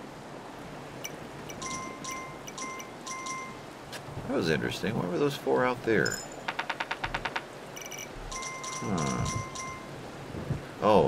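Coins jingle.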